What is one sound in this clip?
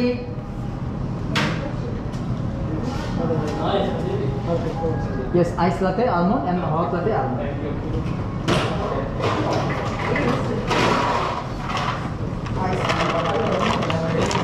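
Cups and dishes clink and clatter.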